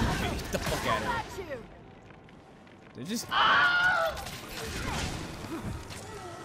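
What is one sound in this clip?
Metal weapons clash and strike.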